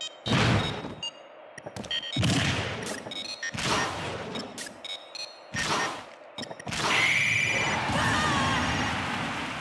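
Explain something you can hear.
Video game fighters land punches and kicks with sharp impact sounds.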